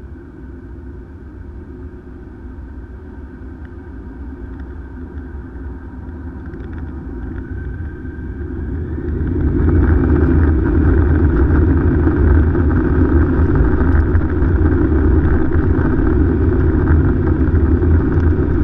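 Aircraft wheels rumble and thump over the ground.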